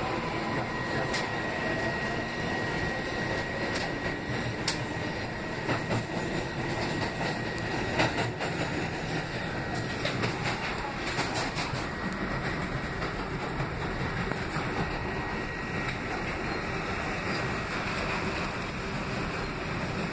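A subway train rumbles steadily along the tracks.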